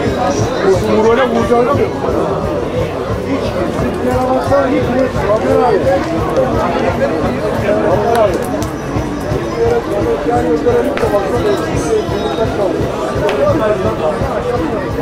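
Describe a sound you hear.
Several men talk and call out nearby, outdoors in the open.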